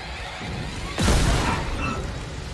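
A weapon fires with a sharp, loud burst.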